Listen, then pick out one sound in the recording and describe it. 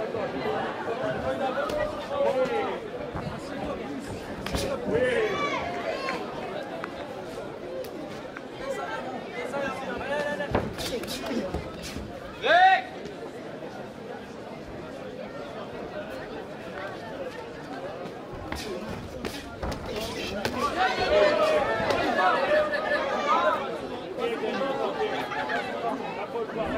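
Gloves and kicks thud against bodies.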